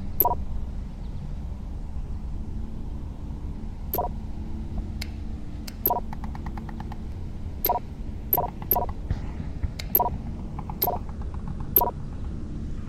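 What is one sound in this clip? Short electronic menu clicks chime now and then.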